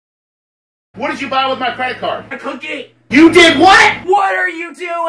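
A man speaks loudly and angrily.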